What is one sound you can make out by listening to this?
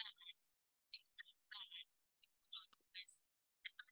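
A woman speaks with animation, heard thinly through an online call.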